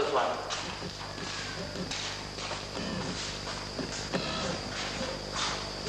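A man talks with animation in an echoing room.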